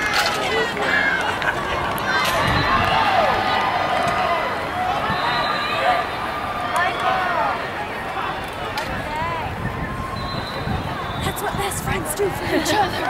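A crowd of young people chatters and shouts outdoors.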